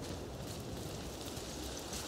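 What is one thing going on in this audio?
A fire crackles in a brazier.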